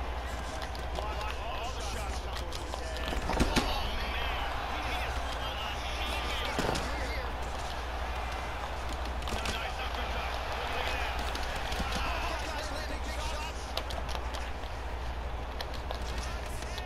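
Punches and kicks land with dull thuds.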